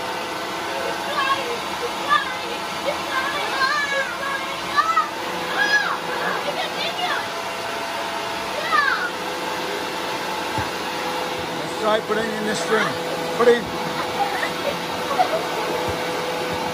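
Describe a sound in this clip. Young boys talk and shout excitedly close by.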